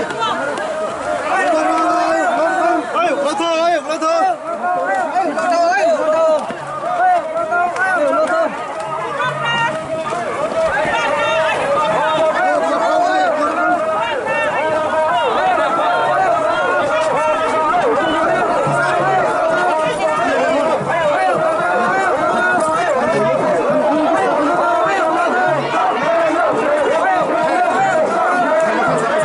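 A large crowd of men and women chatter and call out loudly nearby.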